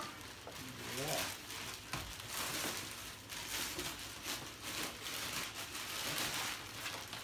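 Plastic wrapping crinkles and rustles loudly.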